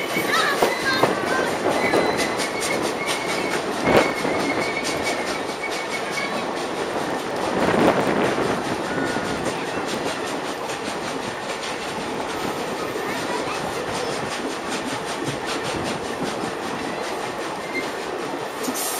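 Wind blows across the microphone outdoors, rustling and buffeting.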